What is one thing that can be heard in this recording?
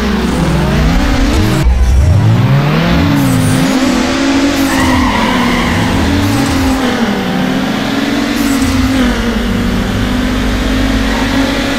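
Race car engines rev loudly, rising and falling in pitch.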